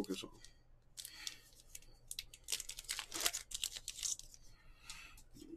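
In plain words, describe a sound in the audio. A foil wrapper crinkles and tears as hands open a pack.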